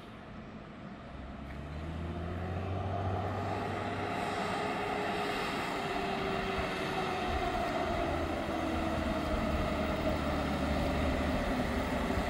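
A bus approaches along a road, its engine growing louder.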